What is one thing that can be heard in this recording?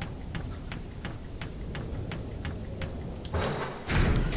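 Footsteps clank on a metal walkway.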